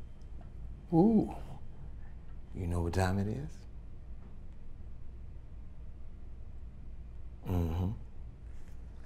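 An elderly woman speaks wearily nearby.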